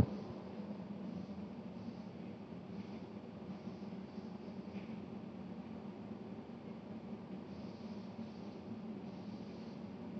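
A damp sponge rubs softly over a ceramic surface.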